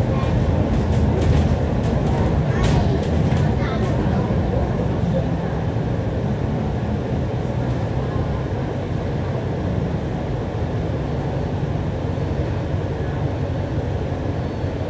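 A diesel double-decker bus engine drones, heard from the upper deck as the bus slows in traffic.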